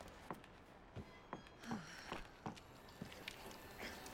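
A ladder rattles as a hand grabs it.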